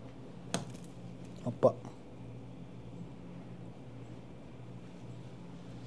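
Blueberries drop softly onto a tart.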